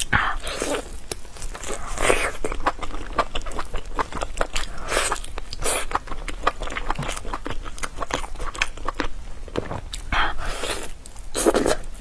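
Meat tears with a wet, sticky sound close by.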